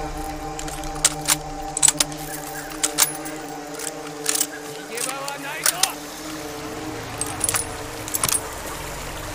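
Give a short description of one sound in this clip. Metal clicks sharply as a rifle is reloaded.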